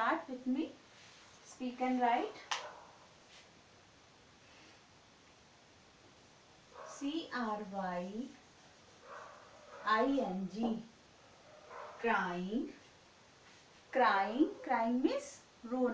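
A woman speaks clearly and slowly, close by, as if teaching.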